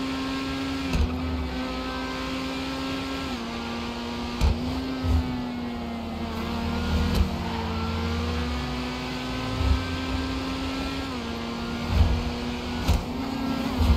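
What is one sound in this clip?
Exhaust pops and bangs from a sports car.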